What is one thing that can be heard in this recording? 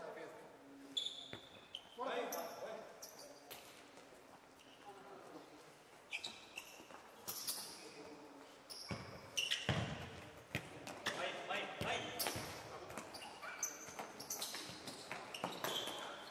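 A ball thuds as it is kicked across the court.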